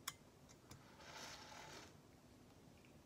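A young man slurps coffee from a cup.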